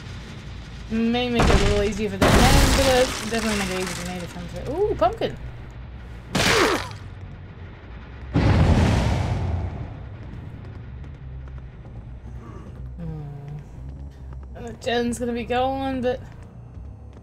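A woman speaks with animation close to a microphone.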